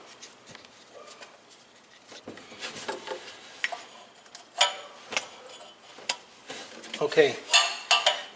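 Metal parts click and clink as a hand works on an engine fitting.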